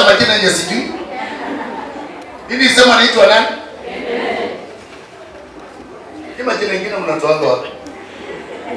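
A man speaks loudly and with animation through a microphone in an echoing room.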